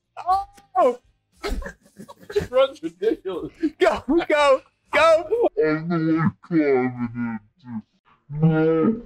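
A young man talks with animation over a microphone.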